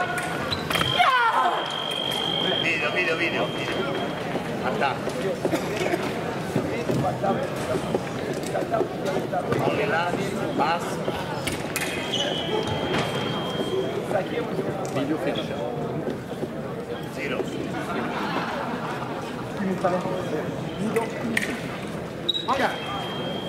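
An electronic scoring buzzer sounds a steady high tone.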